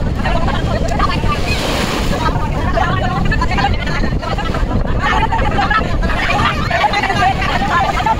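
A crowd of people chatters and shouts outdoors.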